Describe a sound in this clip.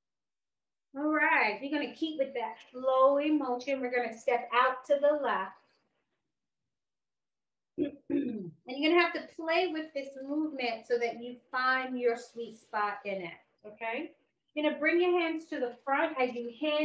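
A woman speaks calmly and clearly into a nearby microphone.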